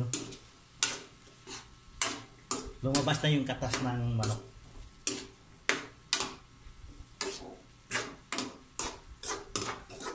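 A metal spatula scrapes and knocks against a pan.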